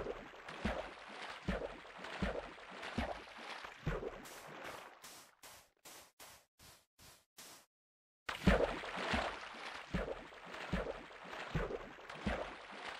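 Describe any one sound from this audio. Footsteps crunch steadily on sand.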